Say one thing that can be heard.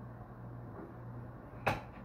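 A chair bumps and creaks as a man gets up.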